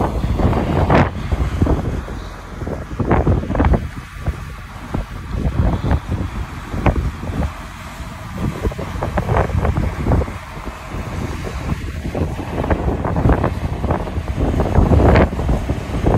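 A truck engine rumbles as a heavy truck drives past.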